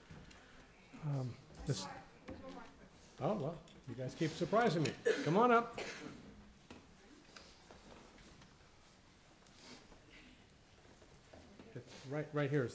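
A middle-aged man speaks with feeling through a microphone in a large echoing room, pausing between phrases.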